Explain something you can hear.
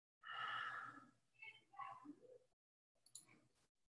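A woman sips a drink from a mug.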